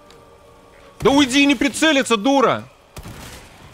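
A young man speaks into a nearby microphone.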